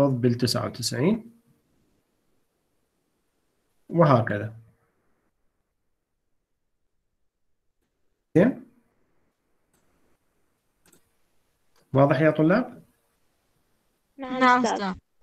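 A man speaks calmly through a microphone in short phrases with long pauses.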